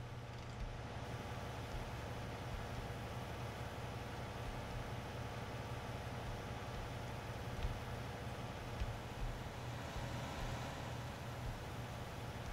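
Loose chopped grass pours out of a tipping trailer with a soft rushing sound.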